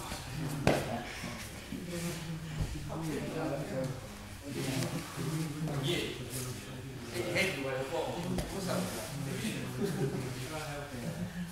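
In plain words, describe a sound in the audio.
Bodies thump and rub on a mat.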